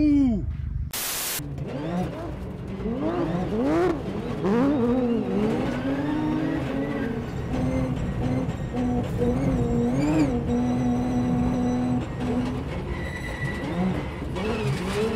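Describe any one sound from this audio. A rally car engine revs hard, rising and falling in pitch.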